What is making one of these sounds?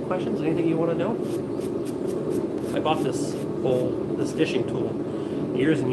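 A man scrubs metal with a wire brush.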